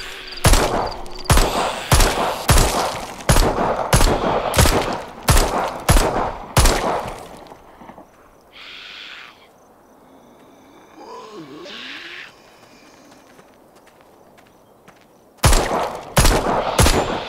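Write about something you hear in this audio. A pistol fires rapid shots that echo outdoors.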